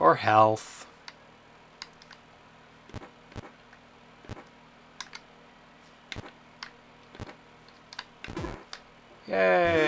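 Soft electronic game blips tick now and then.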